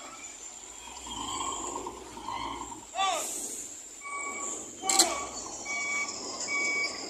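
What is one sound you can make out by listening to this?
Heavy truck engines rumble nearby.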